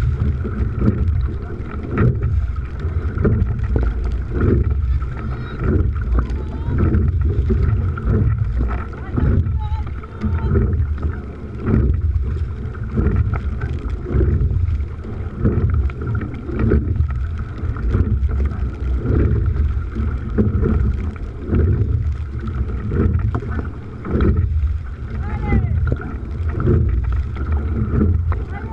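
Oars splash and dip into water in a steady rhythm.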